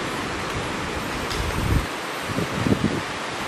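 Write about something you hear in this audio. Water splashes as a man wades through a shallow stream.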